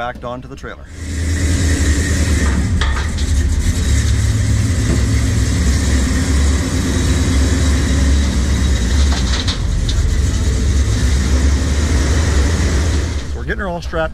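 A car engine rumbles loudly and revs.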